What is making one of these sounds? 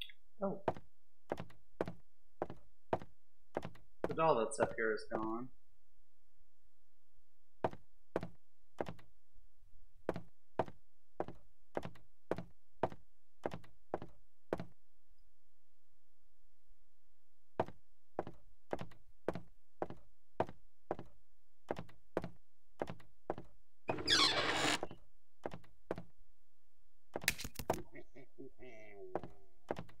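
Footsteps knock steadily on a wooden floor.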